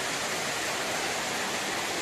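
Air bubbles stream steadily through water.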